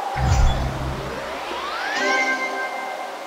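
A rising electronic chime sweeps upward in celebration.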